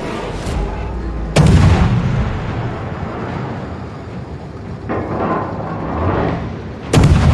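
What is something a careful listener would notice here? Shells splash into water with a deep rushing roar.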